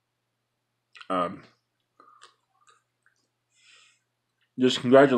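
A man speaks close to a phone microphone in short bursts.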